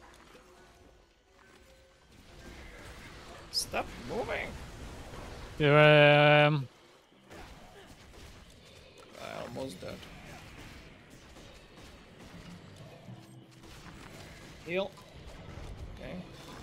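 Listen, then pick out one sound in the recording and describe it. Magic spells burst and crackle in a game.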